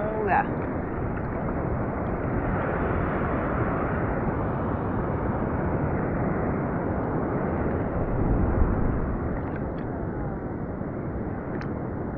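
Wind rumbles steadily across open water.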